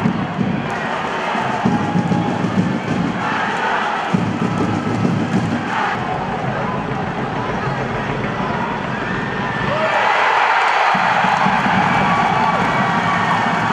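A crowd in a stadium cheers and chants steadily.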